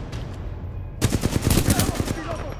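Rapid gunshots fire in a burst.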